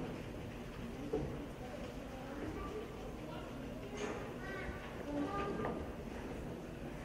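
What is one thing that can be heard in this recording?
A children's choir sings softly in a large hall.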